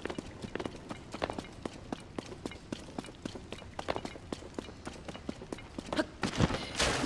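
Footsteps crunch quickly on dirt.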